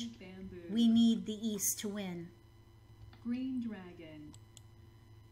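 A woman speaks with animation into a microphone, close by.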